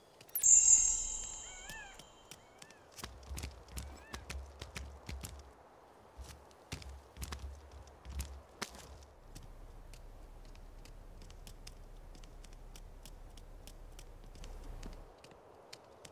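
Quick light footsteps patter across stone.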